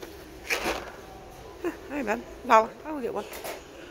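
A small cardboard box rattles and rustles in a hand.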